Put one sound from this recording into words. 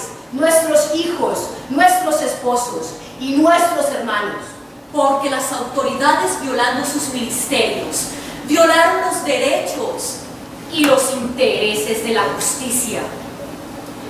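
A woman speaks aloud, declaiming in a large hall.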